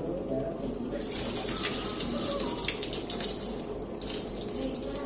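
Water runs from a tap into a metal pot.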